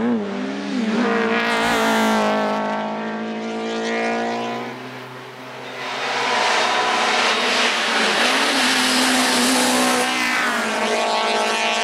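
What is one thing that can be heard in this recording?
A second rally car engine screams as it speeds up the hill and fades away.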